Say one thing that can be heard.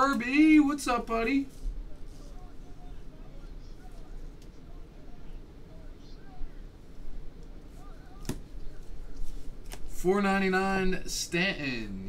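Cards shuffle and slide against each other in hands.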